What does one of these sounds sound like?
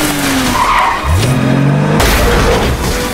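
A car engine revs loudly and rises in pitch.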